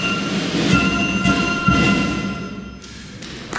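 A flute band plays the last notes of a tune.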